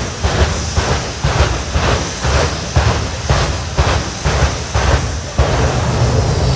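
A jet engine pops and bangs in quick bursts.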